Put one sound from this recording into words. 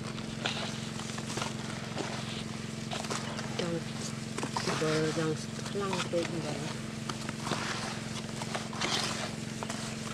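Hands squish and rub wet fish in coarse salt.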